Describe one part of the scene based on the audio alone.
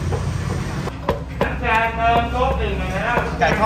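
A cleaver chops on a wooden board.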